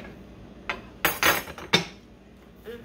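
A young boy chomps noisily on food.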